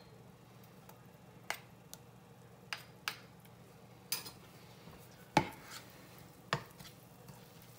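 Butter sizzles and crackles quietly in a hot pan, with occasional sharp pops.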